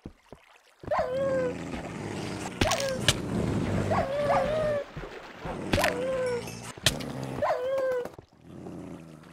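Dogs yelp and whine in short bursts.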